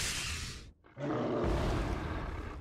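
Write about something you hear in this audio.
A monster roars loudly.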